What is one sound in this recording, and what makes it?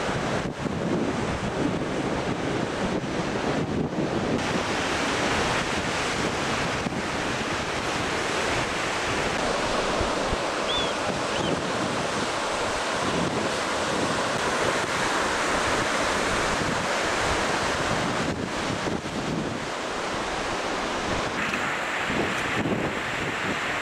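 Surf breaks and washes steadily onto a shore.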